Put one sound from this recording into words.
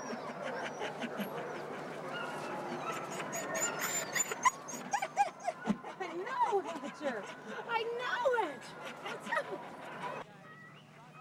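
Dogs bark and yelp excitedly nearby.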